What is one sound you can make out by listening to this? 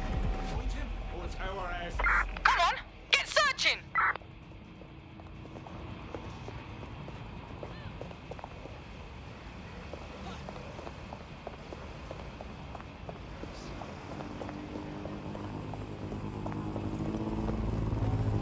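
A man's footsteps run quickly on pavement.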